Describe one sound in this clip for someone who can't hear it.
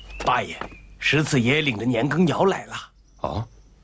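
A man speaks quickly with some urgency.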